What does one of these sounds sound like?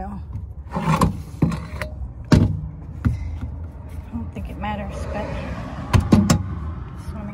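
A metal step lid clunks and rattles as it is lifted open.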